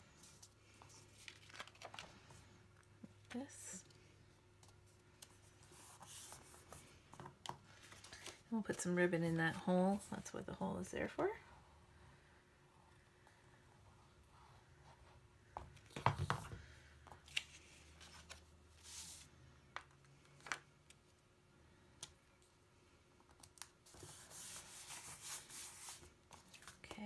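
Paper rustles and slides.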